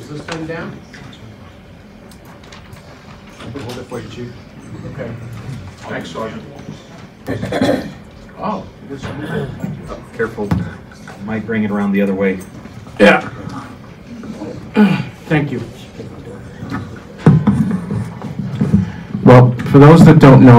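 A crowd of people murmurs and talks.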